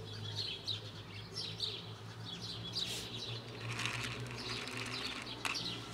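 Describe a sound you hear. Dry pet food rattles in a plastic box.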